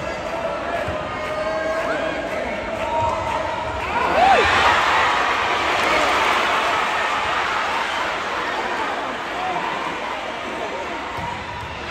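A volleyball thuds off players' hands.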